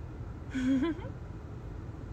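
A young woman close by makes a short high, playful vocal sound.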